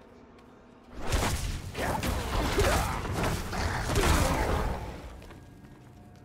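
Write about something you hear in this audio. Fire bursts and roars loudly.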